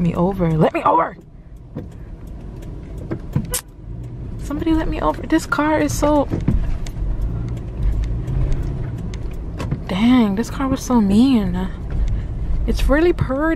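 A car engine rumbles low while driving through city traffic.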